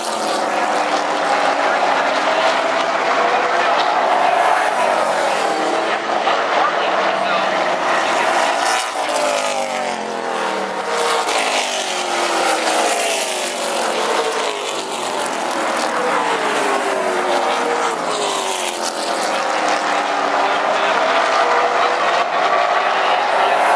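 Race car engines roar loudly as cars speed past, their pitch rising and falling.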